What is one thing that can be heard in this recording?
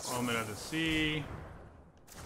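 Bright electronic chimes ring out and fade.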